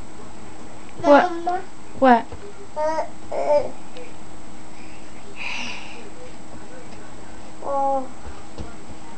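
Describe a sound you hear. A young child babbles and squeals nearby.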